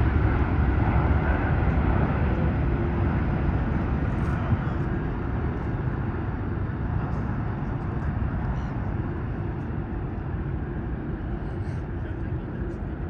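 A jet airliner's engines roar loudly as it climbs away and slowly fades.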